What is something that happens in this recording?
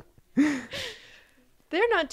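A young girl laughs close to a microphone.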